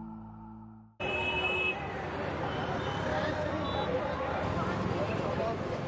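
Traffic rumbles along a busy street, with engines and horns.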